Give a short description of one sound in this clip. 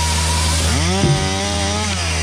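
Wood cracks as a log is gripped and cut.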